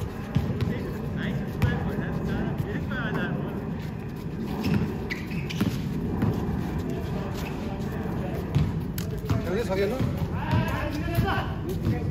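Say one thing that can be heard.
A basketball bounces on hard concrete.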